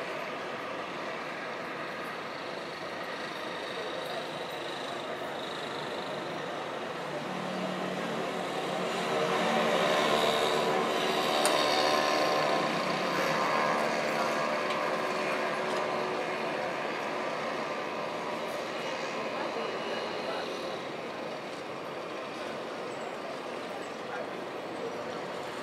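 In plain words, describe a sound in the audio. Distant city traffic rumbles steadily, swelling for a while in the middle.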